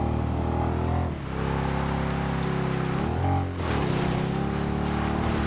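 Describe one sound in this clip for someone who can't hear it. A quad bike engine drones steadily, dropping and rising in pitch.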